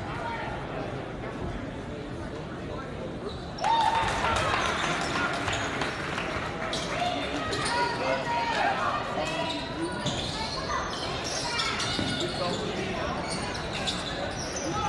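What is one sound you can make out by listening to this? A crowd murmurs and cheers in a large echoing gym.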